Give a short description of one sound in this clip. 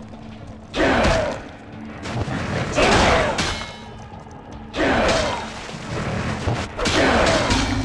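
Blades slash and strike in a fight.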